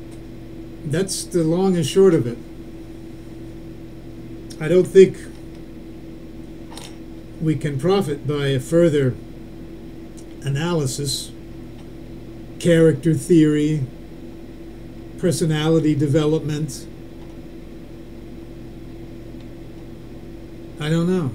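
A man speaks slowly and calmly, close to a microphone, with long pauses.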